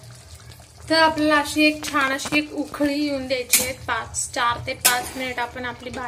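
A thick sauce bubbles and simmers in a pan.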